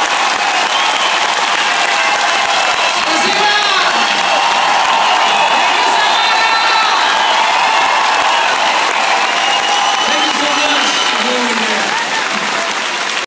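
Many voices in a crowd sing along loudly.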